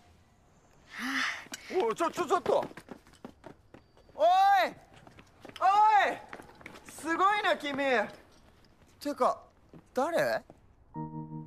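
A young man shouts with animation, close by.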